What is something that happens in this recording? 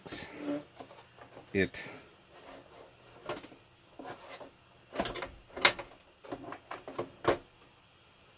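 A metal cover clicks and knocks as it is handled.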